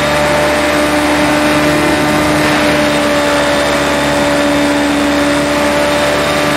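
A racing car engine whines steadily at high revs.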